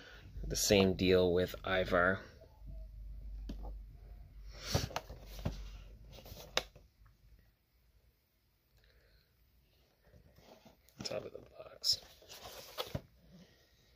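A cardboard toy box rustles and taps as hands handle it.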